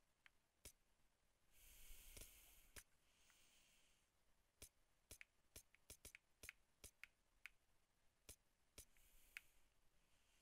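A computer mouse clicks sharply, again and again.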